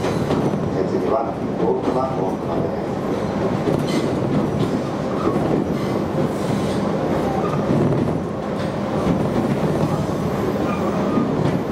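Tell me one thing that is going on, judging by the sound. An electric train rumbles along the tracks, heard from inside a carriage.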